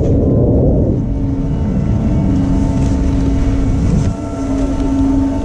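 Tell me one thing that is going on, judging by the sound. A chairlift's machinery hums steadily nearby.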